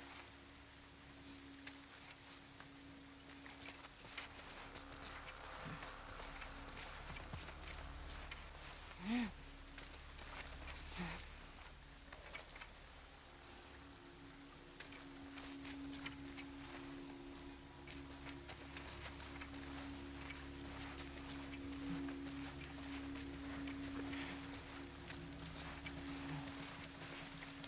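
Tall grass rustles as someone crawls through it.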